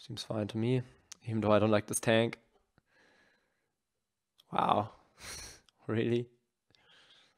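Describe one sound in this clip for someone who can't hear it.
A young man speaks casually into a close microphone, in short bursts.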